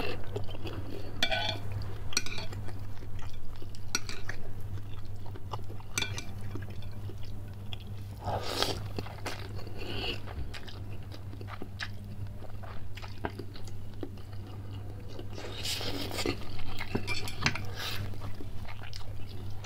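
A man chews wetly with his mouth close up.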